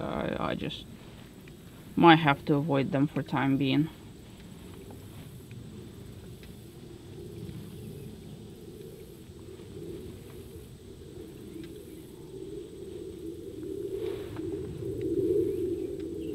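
Water laps softly against the hull of a small boat gliding along.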